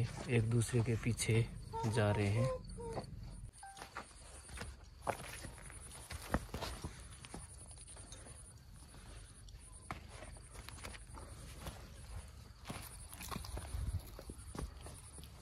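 A snake slithers softly over sand and gravel.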